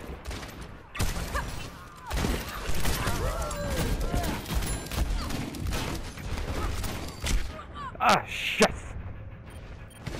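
A lever-action rifle fires sharp shots in a video game.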